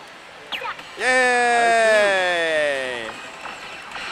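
A slot machine plays a long electronic tone that slowly falls in pitch.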